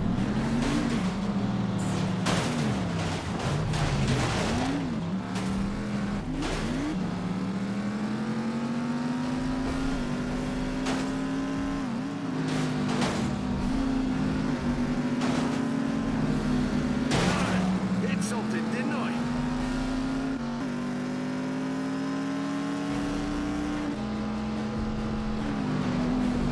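A racing car engine roars and whines, rising and falling in pitch as it shifts gears.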